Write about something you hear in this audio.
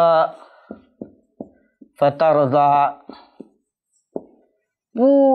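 A man chants in a melodic voice close to a microphone.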